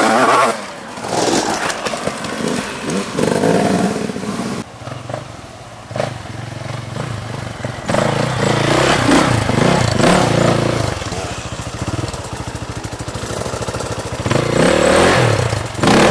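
Tyres churn and spray loose dirt.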